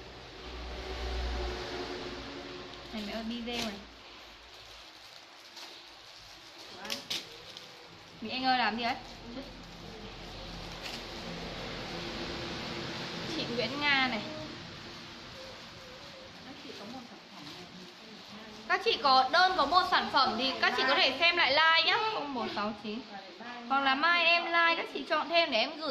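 Plastic bags rustle and crinkle.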